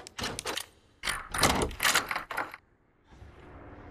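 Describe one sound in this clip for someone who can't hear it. A key turns in a door lock with metallic clicks.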